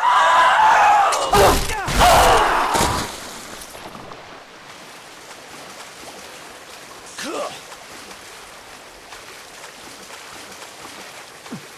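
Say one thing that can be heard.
Water sloshes softly as someone wades through it.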